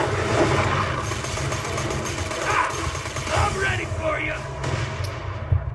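Gunfire and explosions crackle from a game played through a speaker.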